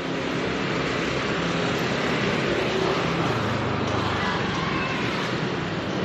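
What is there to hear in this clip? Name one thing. A motor scooter rides past.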